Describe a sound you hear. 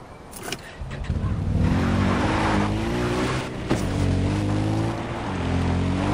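A quad bike engine rumbles steadily, rising and falling as it drives.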